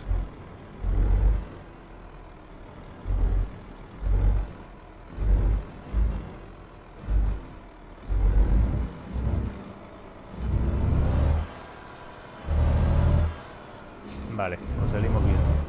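A truck engine hums steadily.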